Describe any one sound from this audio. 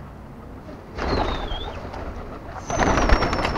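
Pigeons flap their wings in a loud flurry as they take off.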